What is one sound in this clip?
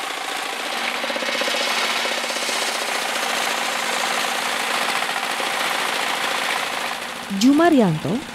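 A circular saw whines as it cuts through a log.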